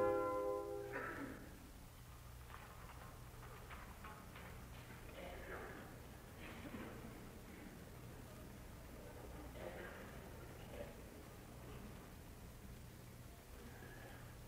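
An elderly man speaks calmly through an old, hissy recording.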